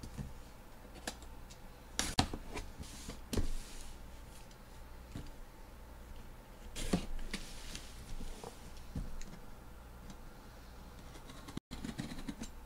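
Fingers tap and rub against a cardboard box close by.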